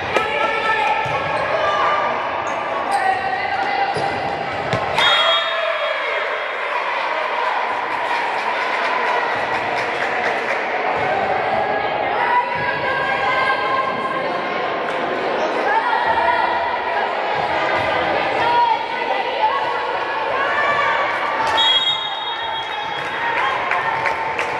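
A crowd of girls and adults chatter and call out in a large echoing hall.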